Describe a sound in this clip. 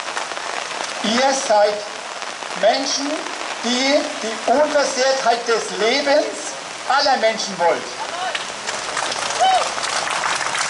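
A woman sings in short phrases outdoors.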